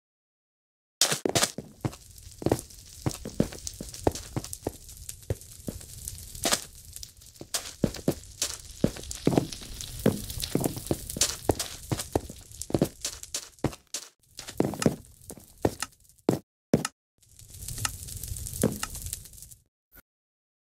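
Quick footsteps patter on hard blocks.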